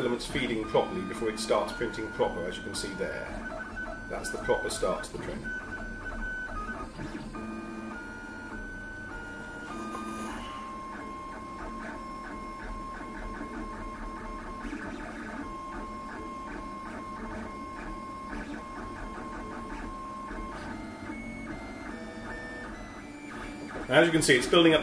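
A printer's motors whine in short, shifting tones.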